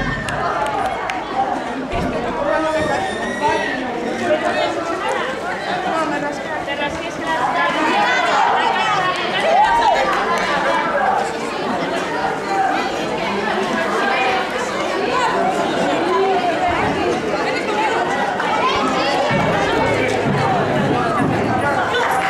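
A crowd of girls and adults chatter and call out all around, outdoors.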